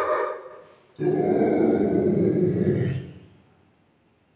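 A dog howls in a long, steady cry.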